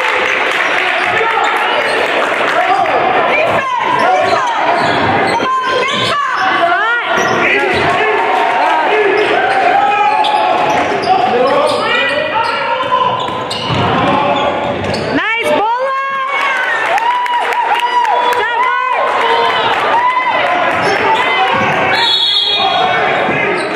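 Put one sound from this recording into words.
Spectators murmur and chatter in a large echoing gym.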